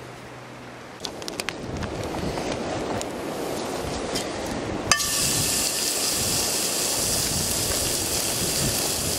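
A wood fire crackles under a frying pan.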